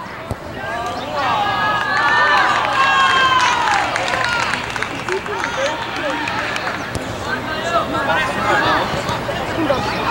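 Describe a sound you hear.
Children shout and call out loudly across an open outdoor field.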